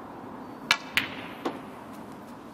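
Snooker balls knock together with a crisp click.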